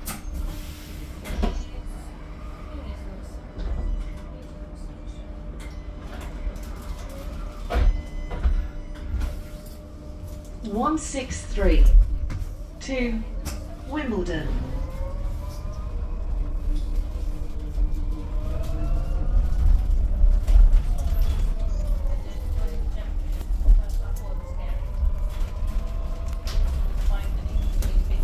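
Loose panels on a bus rattle and knock.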